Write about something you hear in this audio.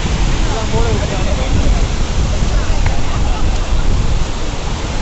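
Water rushes and splashes over a low weir.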